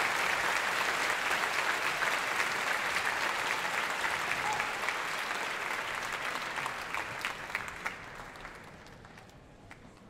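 A large audience applauds in a big hall.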